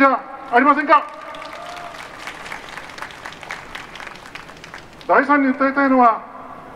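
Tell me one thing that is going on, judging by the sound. An elderly man speaks slowly into a microphone through a loudspeaker, with pauses.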